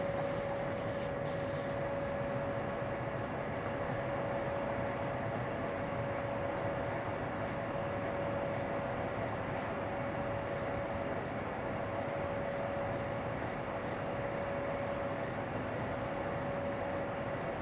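A train rumbles steadily along the tracks with a constant whine.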